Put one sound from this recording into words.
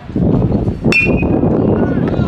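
A metal bat strikes a ball with a sharp ping.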